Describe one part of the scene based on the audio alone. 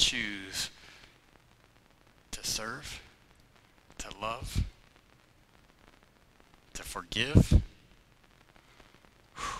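A man speaks with animation in short bursts, heard through a microphone in an echoing hall.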